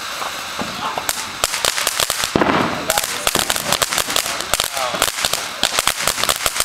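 A firework fountain crackles and pops rapidly.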